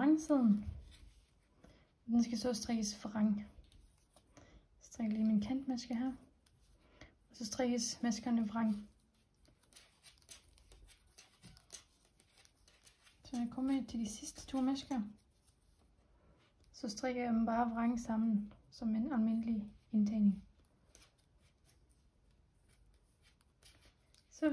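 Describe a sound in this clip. Wooden knitting needles click and tap softly against each other.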